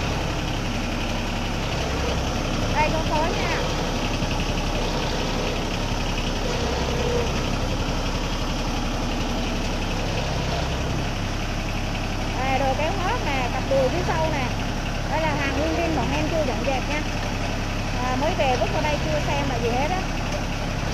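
A tractor engine idles with a steady, low chugging.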